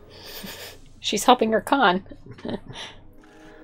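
A young woman talks and reacts nearby.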